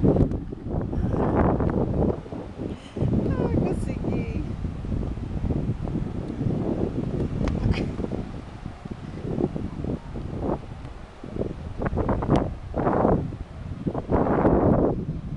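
Waves break on the shore nearby.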